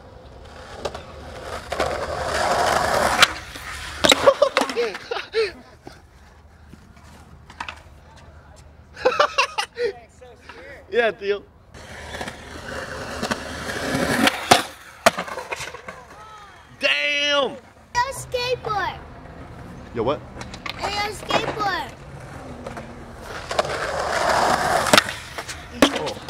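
Skateboard wheels roll and rumble over concrete.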